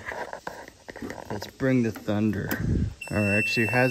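Keys jingle on a key ring.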